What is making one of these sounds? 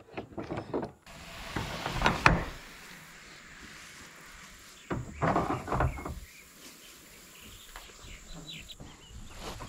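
A large metal door swings open with a creak.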